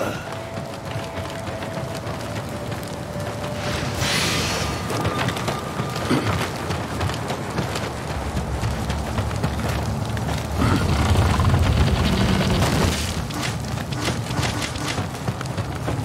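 Footsteps crunch over gravel and wooden boards.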